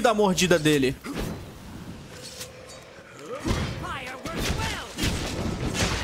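A sword whooshes through the air and strikes.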